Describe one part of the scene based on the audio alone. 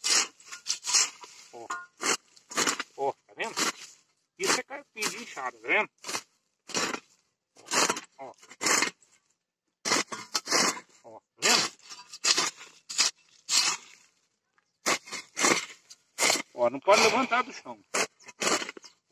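A hoe scrapes and chops into dry soil, stroke after stroke.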